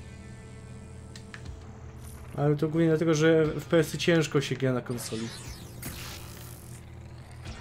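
A game's energy blasts crackle and whoosh.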